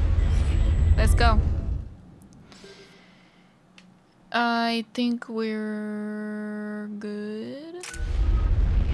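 A young woman speaks into a microphone.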